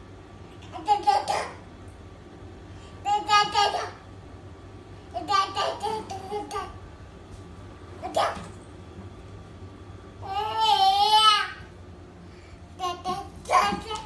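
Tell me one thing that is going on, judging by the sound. A toddler babbles and squeals up close.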